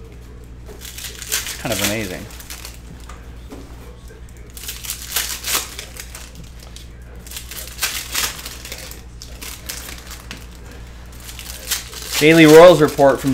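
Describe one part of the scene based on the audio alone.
Plastic card sleeves rustle and crinkle as cards are handled.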